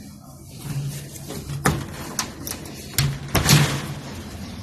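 A curtain rustles as it is pulled aside.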